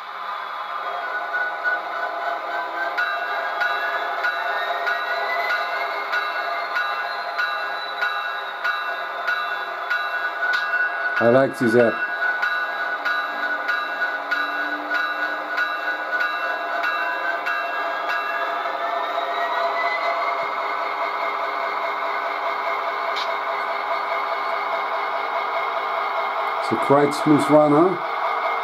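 A model diesel locomotive's engine hums steadily and revs up and down.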